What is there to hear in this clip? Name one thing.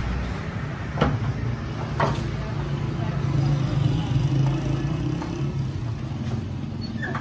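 Heavy sacks thump down onto a cart.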